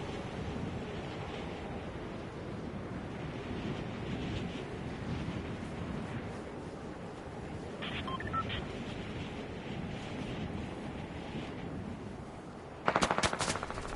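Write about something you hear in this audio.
Wind rushes steadily as a game character glides down through the air.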